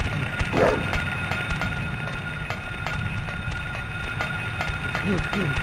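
Footsteps clank on a metal grating at a steady pace.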